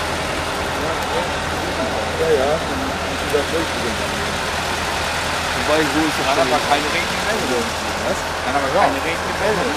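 Men talk casually outdoors nearby.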